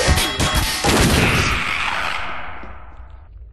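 A crowbar strikes a hard wall with a loud crash.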